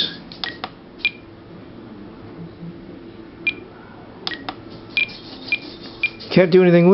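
An electronic device gives short, high beeps several times.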